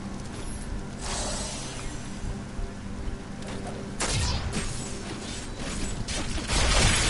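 Blasts of magic burst with loud whooshing roars.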